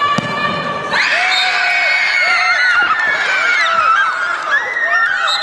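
Young women scream and cheer in celebration.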